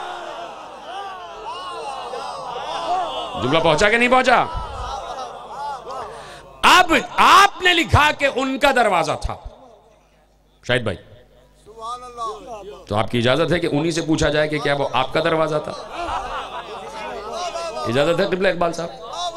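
A man speaks with passion into a microphone, heard through loudspeakers in an echoing space.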